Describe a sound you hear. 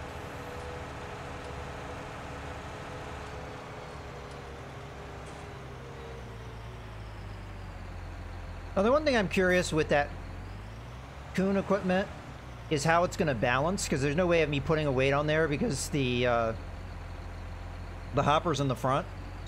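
A tractor engine rumbles steadily as the tractor drives and slows down.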